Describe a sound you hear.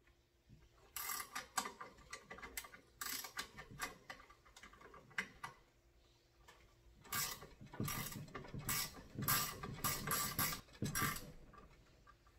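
A metal vise handle turns with clicking and rattling.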